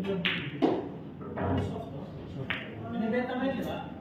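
A cue stick strikes a ball with a sharp click.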